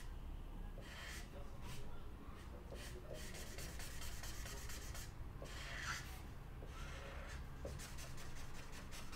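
A felt-tip marker squeaks and scratches across paper in short strokes.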